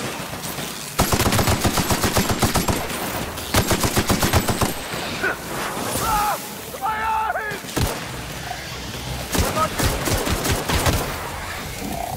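An automatic gun fires rapid bursts of shots.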